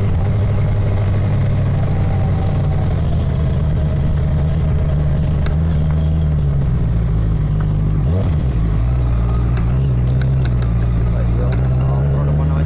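Gravel and stones crackle under the tyres.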